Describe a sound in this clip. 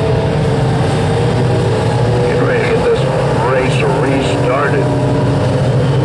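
Race cars roar past close by.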